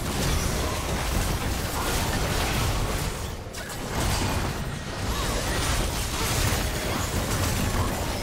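Video game spell effects and impacts crash and whoosh during a fight.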